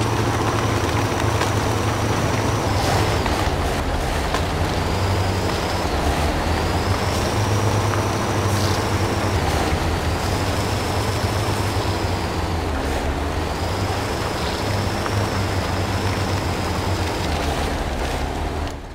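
A heavy truck engine rumbles low and steady.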